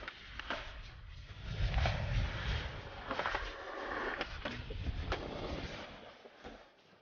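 Skateboard wheels roll and rumble over concrete.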